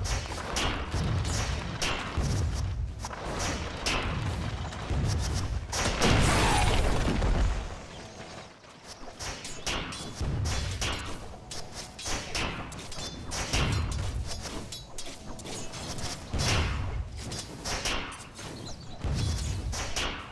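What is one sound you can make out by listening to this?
Video game battle effects clash and crackle.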